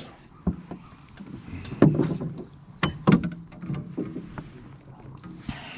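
A fish flops on the floor of a small boat.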